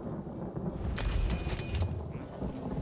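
A bright metallic jingle of coins rings out briefly.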